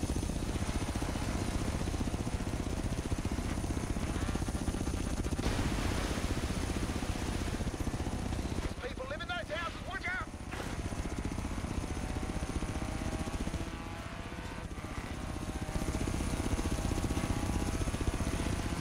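A buggy engine roars loudly, revving up and down.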